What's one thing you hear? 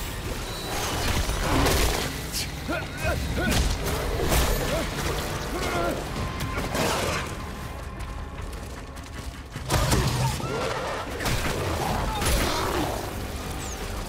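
A creature growls and shrieks close by.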